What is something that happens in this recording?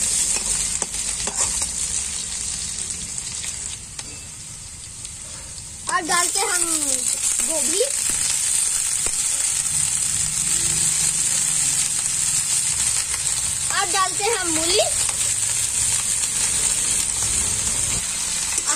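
Food sizzles steadily in hot oil in a metal pan.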